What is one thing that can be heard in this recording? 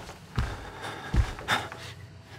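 A wooden door swings shut with a knock.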